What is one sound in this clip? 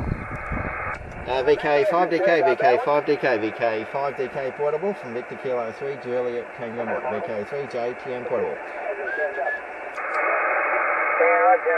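A voice crackles through a radio's speaker.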